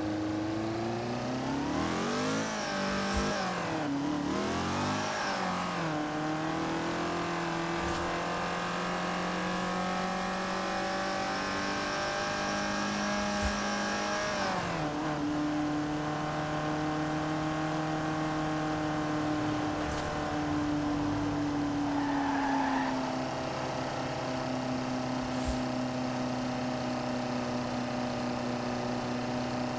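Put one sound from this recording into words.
A racing car engine roars, revving up and down through the gears.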